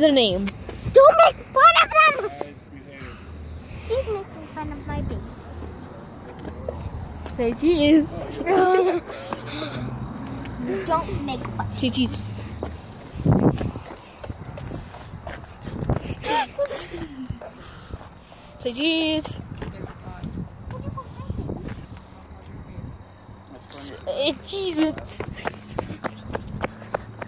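A young girl talks and giggles excitedly close by.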